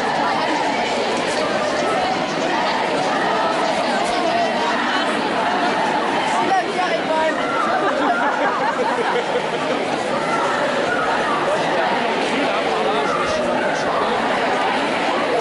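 A large crowd of women chants and shouts outdoors.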